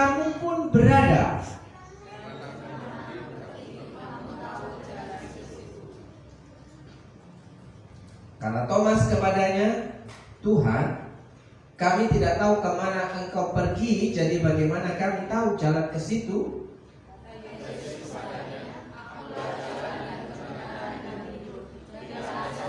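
A man speaks through a microphone in a large echoing hall, preaching with animation.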